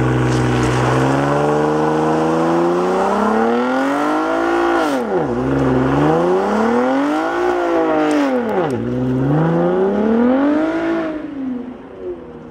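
A sports car engine revs up and down repeatedly.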